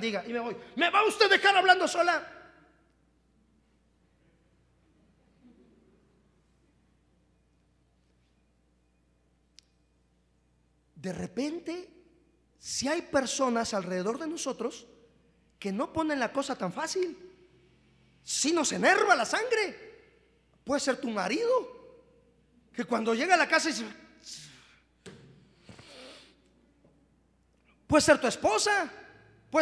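A man preaches with animation through a microphone, in bursts with pauses.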